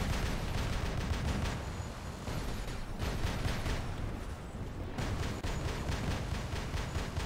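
Heavy mechanical footsteps thud steadily.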